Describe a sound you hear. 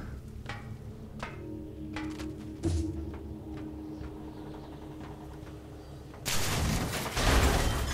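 Footsteps clank on metal grating.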